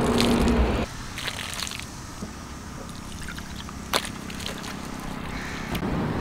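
Water splashes onto a face.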